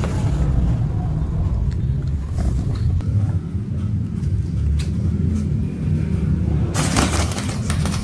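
A crinkly fabric tunnel rustles and crackles.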